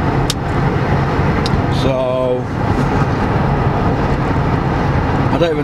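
A car engine and road noise rumble steadily inside a moving car.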